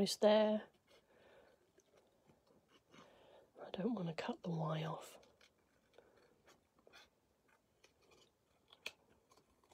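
Scissors snip through thin card close by.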